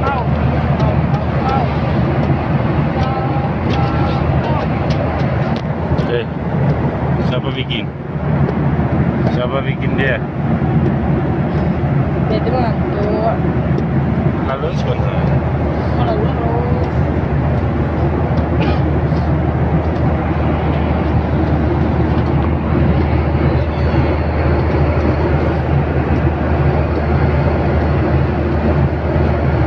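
A plane's engines hum in a loud, steady drone inside the cabin.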